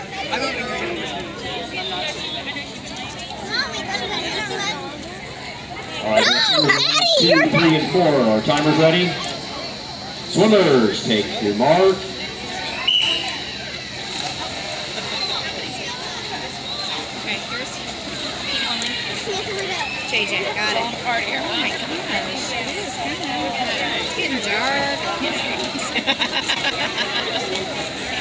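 A crowd of people chatters and cheers outdoors.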